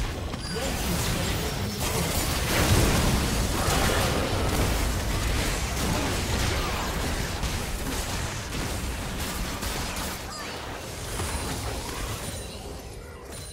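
Game spell effects whoosh and crackle in a busy fight.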